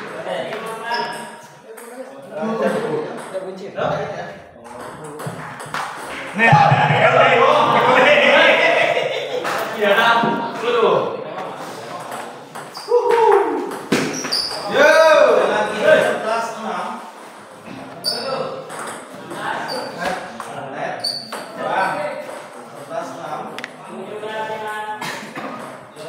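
A table tennis ball clicks back and forth on the table and paddles.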